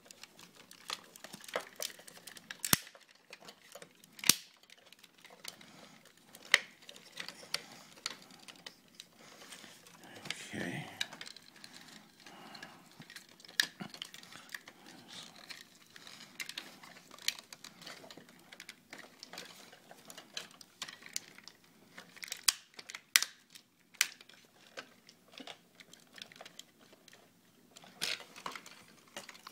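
Plastic toy parts click and clack as hands twist them.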